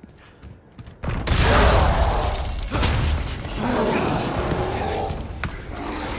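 A heavy crash booms with a long, deep rumble.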